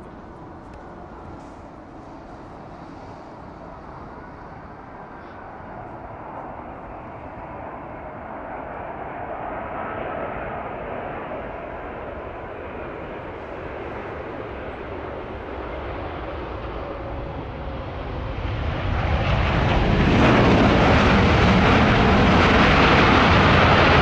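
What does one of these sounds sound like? A large jet airliner's engines roar as it comes in to land, growing steadily louder and closer.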